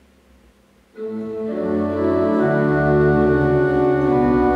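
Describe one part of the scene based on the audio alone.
A pipe organ plays loud sustained chords.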